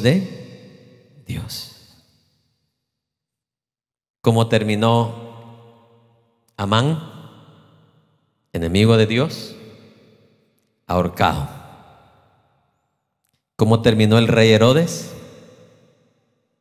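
A man speaks with animation through a microphone, his voice echoing in a large hall.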